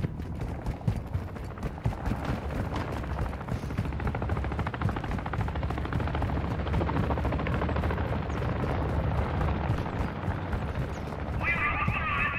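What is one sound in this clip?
Footsteps run quickly over hard pavement.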